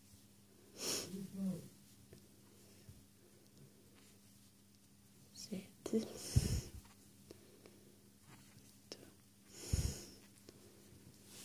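Yarn rustles softly as a crochet hook works through it.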